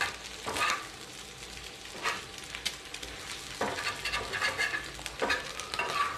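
Egg sizzles in a hot pan.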